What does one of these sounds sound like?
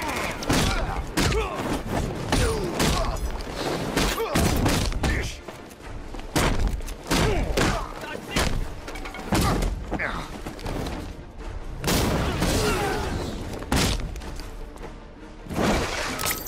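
Heavy punches and kicks thud in quick succession.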